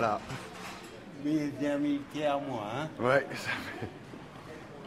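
An elderly man speaks cheerfully and laughs close by.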